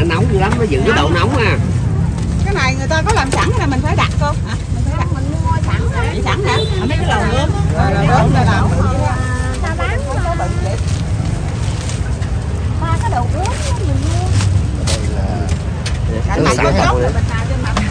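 Several adults chatter nearby.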